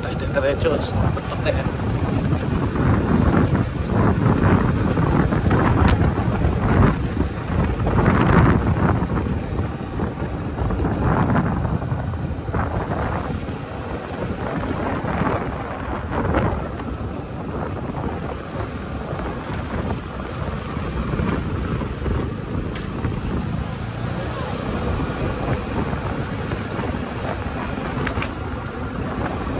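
A motorbike engine hums steadily while riding along a road.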